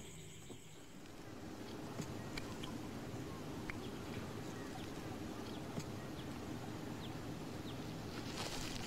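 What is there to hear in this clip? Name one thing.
Leaves and twigs rustle and snap as a man pushes through brush.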